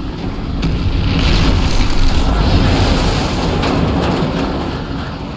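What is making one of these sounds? A huge explosion booms and rumbles.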